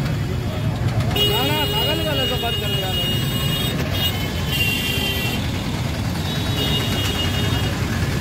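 Motorcycles ride past on a road.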